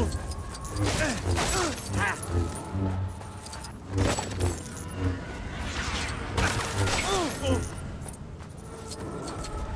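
Plastic bricks clatter as objects break apart.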